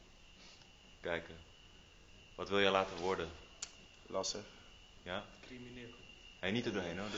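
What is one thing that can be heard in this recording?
A young man speaks calmly and haltingly, close to a microphone.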